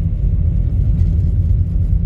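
A windshield wiper sweeps across the glass.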